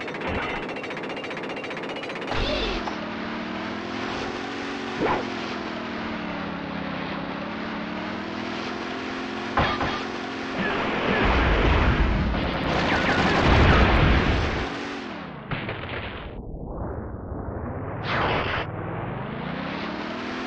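Water splashes and churns against a boat's hull.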